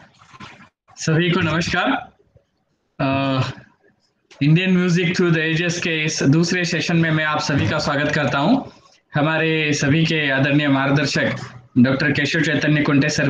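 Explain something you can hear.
A man speaks calmly through an online call microphone.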